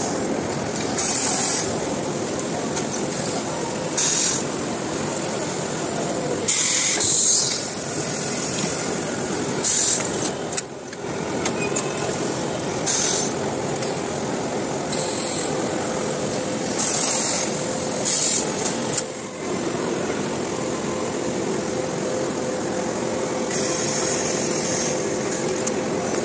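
Steam hisses from a garment press in short, sharp bursts.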